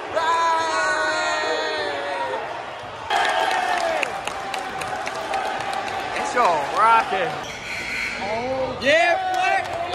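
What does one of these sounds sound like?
Basketball shoes squeak on a wooden floor.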